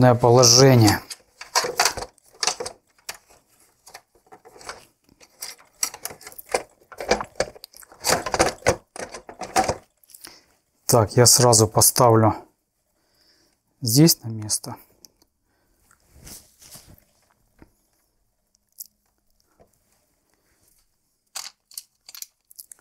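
Plastic parts click and rattle under hands at work.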